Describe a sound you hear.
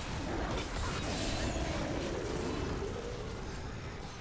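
Spell blasts and combat effects roar loudly, then fade.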